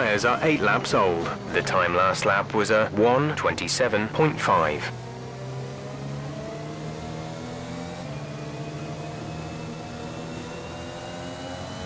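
A racing car engine hums steadily and slowly rises in pitch.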